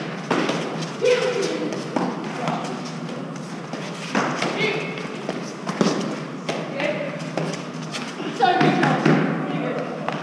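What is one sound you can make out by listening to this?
Young women call out to each other during the rally.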